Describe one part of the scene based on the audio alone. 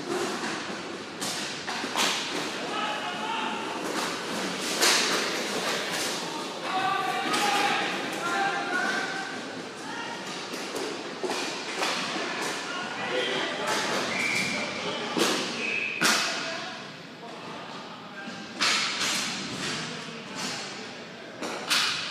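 Hockey sticks clack and a ball knocks against sticks and pads in a large echoing arena.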